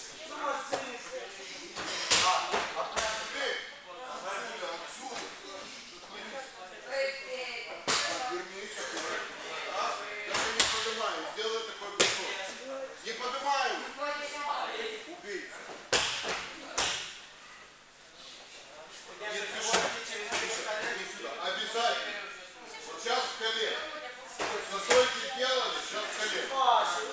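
Young people talk and call out in the echoing hall.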